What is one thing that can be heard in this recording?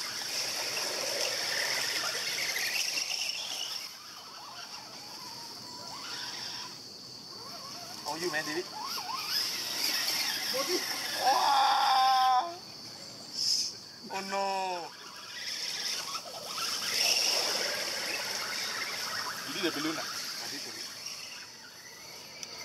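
Muddy water splashes under the wheels of a toy truck.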